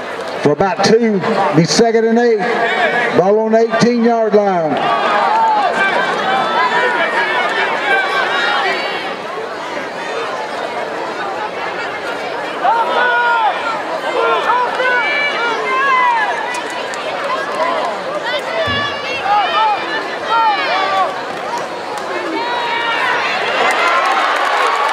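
A large crowd of spectators cheers and shouts outdoors.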